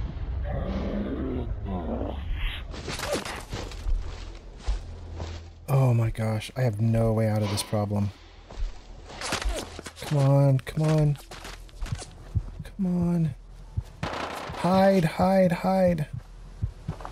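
An older man talks calmly into a close microphone.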